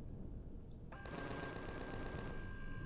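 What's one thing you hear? Guns fire in rapid, rattling bursts.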